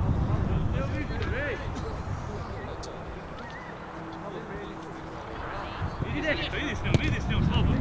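Young men shout to each other across a playing field.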